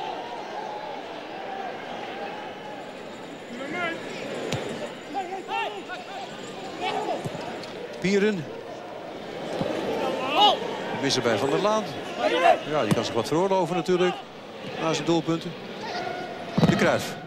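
A stadium crowd murmurs and cheers in the open air.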